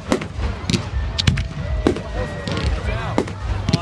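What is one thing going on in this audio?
Firework sparks crackle and fizz.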